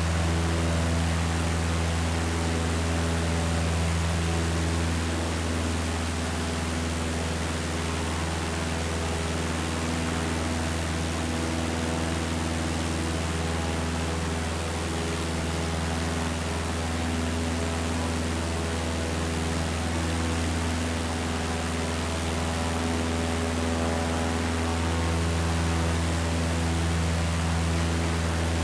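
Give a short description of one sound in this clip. Wind rushes past a small plane.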